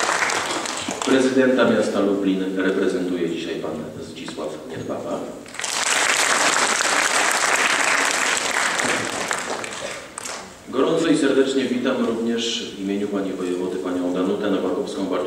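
A man speaks steadily into a microphone, heard through a loudspeaker.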